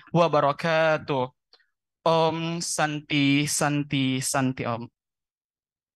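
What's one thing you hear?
A young man speaks calmly into a microphone over loudspeakers.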